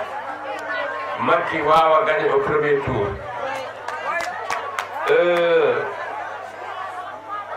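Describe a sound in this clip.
An elderly man speaks forcefully into a microphone, heard through loudspeakers.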